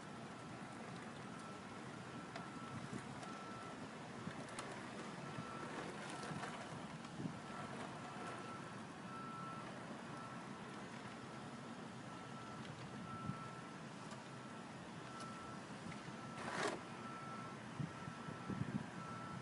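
Small electric motors whir steadily.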